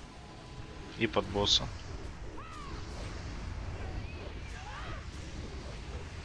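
Fantasy battle sound effects clash and whoosh.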